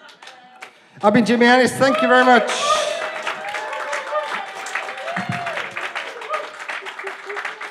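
An audience laughs and cheers loudly.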